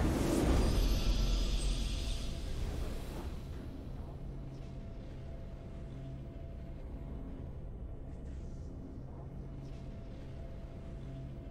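A triumphant fanfare swells and rings out.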